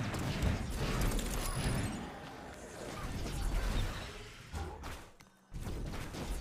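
Video game spell effects whoosh and clash.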